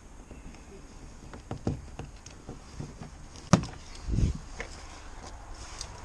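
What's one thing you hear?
A van door clunks shut.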